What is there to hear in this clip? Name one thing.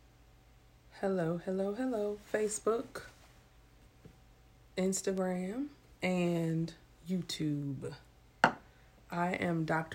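A woman speaks calmly and close up into a microphone.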